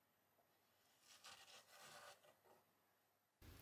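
Clay scrapes softly under a small tool.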